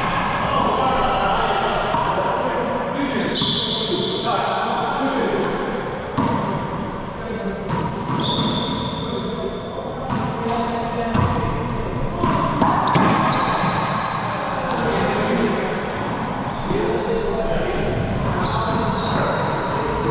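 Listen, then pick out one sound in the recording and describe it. Several men talk casually in a small echoing court.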